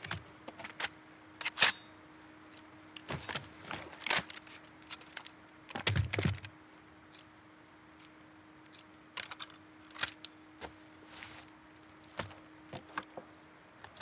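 Metal gun parts click and clack as they are handled.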